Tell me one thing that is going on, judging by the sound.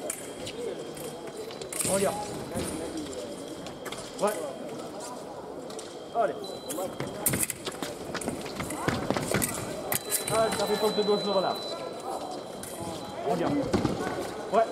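Feet stamp and slide on a metal fencing strip.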